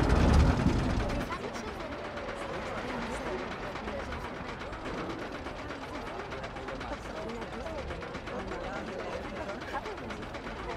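A roller coaster lift chain clatters with rapid, steady clicks as the train climbs.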